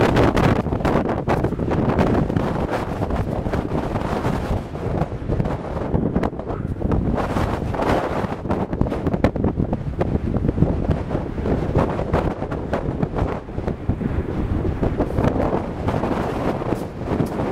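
Strong wind roars and buffets close by outdoors.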